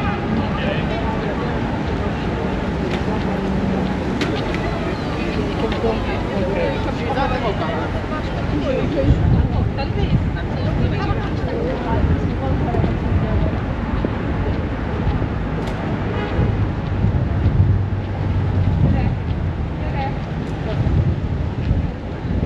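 Low wind rumbles across the microphone.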